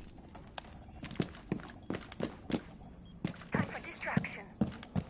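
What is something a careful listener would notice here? Heavy footsteps thud on wooden stairs.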